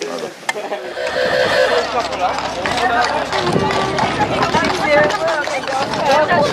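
A crowd of men and women chatter nearby, outdoors.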